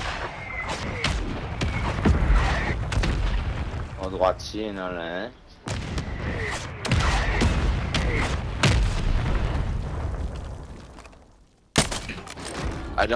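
Gunfire cracks in sharp bursts.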